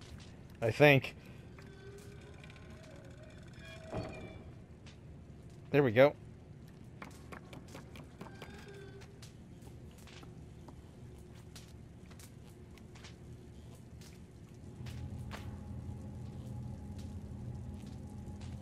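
Small footsteps patter on wooden floorboards.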